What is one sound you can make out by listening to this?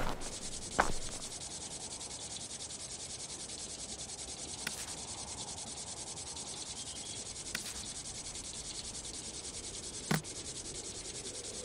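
Water sprinklers hiss steadily.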